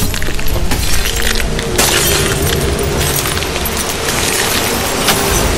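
A deep roar of tumbling debris rumbles steadily.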